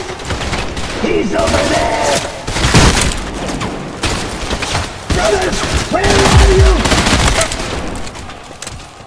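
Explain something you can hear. Gunshots fire in rapid bursts, loud and close.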